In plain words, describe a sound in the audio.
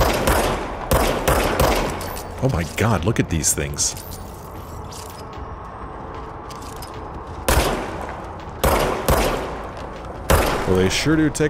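A pistol fires sharp, echoing shots.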